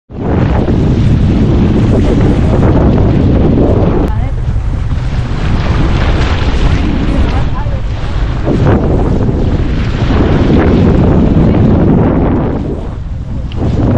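Water splashes and rushes along the hull of a moving boat.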